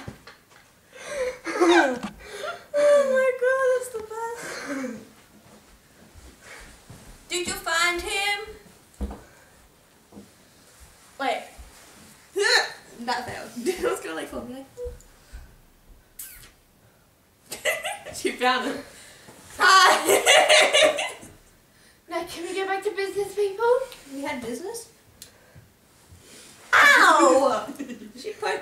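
A teenage girl talks with animation close by.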